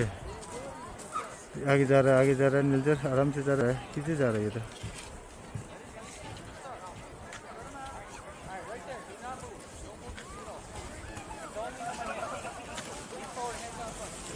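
Children chatter and shout in the distance outdoors.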